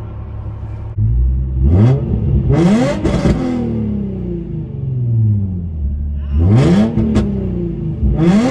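A car engine revs hard as the car accelerates, its pitch climbing and dropping with each gear change.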